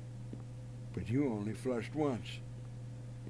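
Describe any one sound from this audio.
A young man speaks briefly over an online call.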